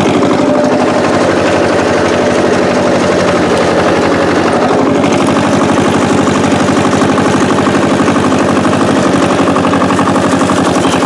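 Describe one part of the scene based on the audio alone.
An old tractor engine chugs loudly and steadily close by.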